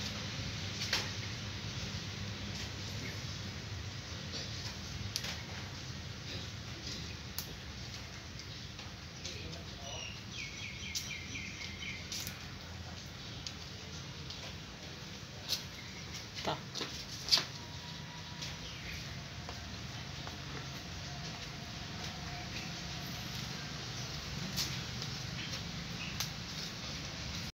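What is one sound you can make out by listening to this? Cats chew and lap at food close by, with small clicks.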